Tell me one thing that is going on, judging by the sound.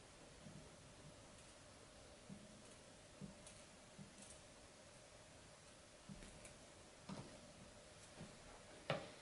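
Small objects tap and click on a hard surface.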